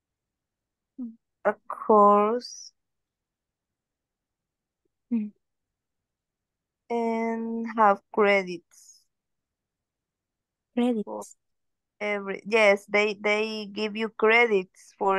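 A young woman speaks calmly in short phrases over an online call.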